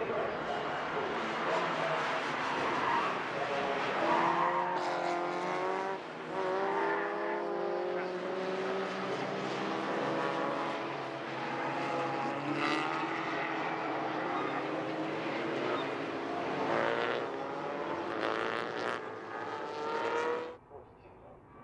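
Many racing car engines roar and rev loudly as a pack of cars accelerates past.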